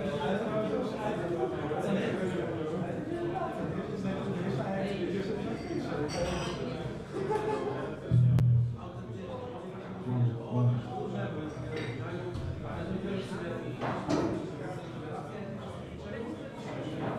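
Acoustic guitars play together through loudspeakers in a room.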